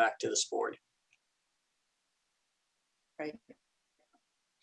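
A man speaks briefly through an online call, with long silences between.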